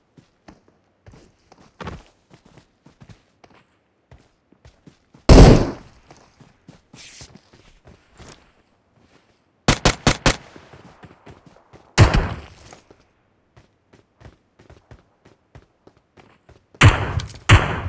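Footsteps crunch over grass and rock.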